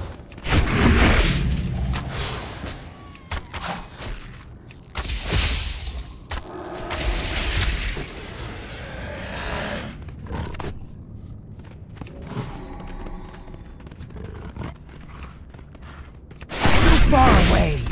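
Blows land with sharp hits.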